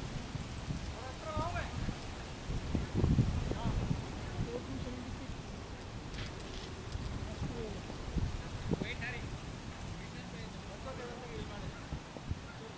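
Men call out faintly across an open field.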